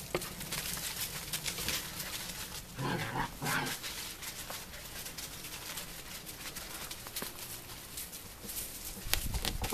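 Puppies scamper and rustle through dry leaves on grass.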